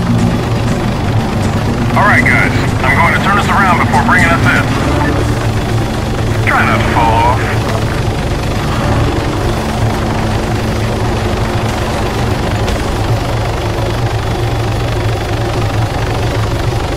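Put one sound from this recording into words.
A helicopter engine and rotor drone steadily close by.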